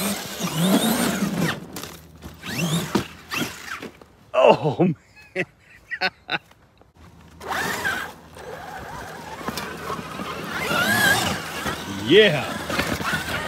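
Tyres spin and spray loose sand.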